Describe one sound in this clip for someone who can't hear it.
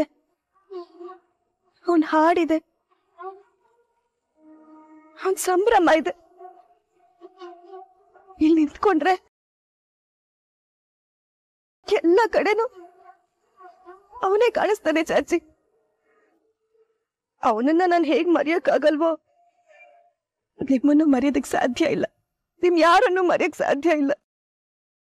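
A young woman speaks emotionally, close by.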